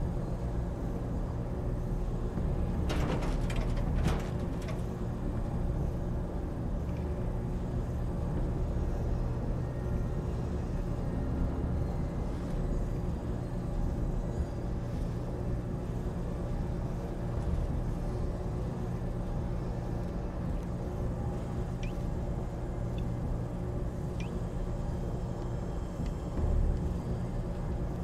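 A steady low mechanical hum drones throughout.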